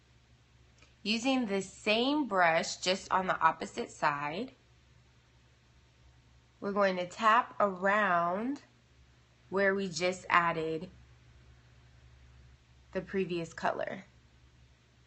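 A young woman talks casually and close to the microphone, in short bursts with pauses.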